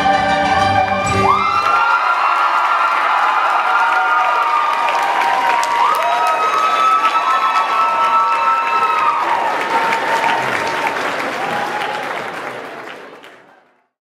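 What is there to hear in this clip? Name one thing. A large audience applauds loudly and then fades out.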